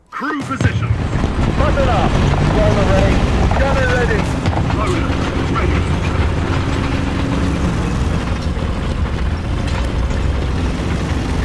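A tank engine rumbles and clanks steadily as the tank drives.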